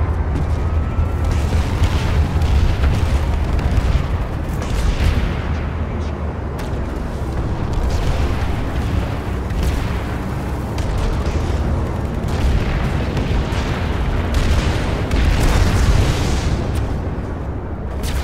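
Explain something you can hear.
Wind rushes past loudly and steadily, with a deep rumble.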